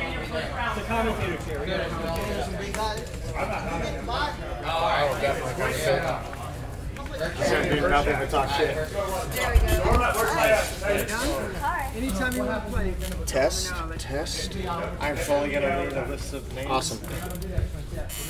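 A second young man talks and laughs into a microphone, close by.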